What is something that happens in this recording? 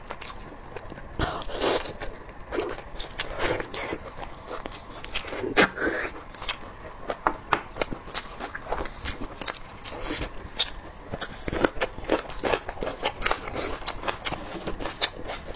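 A young woman chews and slurps food wetly close to a microphone.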